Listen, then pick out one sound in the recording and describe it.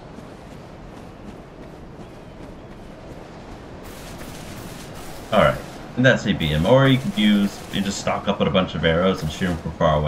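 Footsteps run quickly over soft grass.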